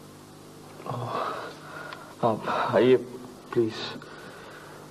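A young man speaks softly nearby.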